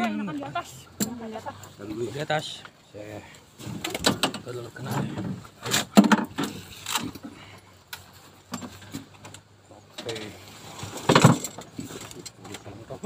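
Metal parts clank and knock against a vehicle.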